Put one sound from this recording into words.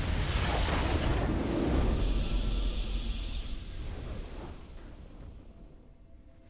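A victory fanfare swells, then fades away.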